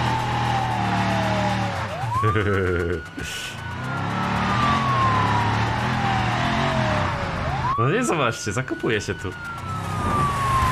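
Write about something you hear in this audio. A car engine revs up and drops as gears shift.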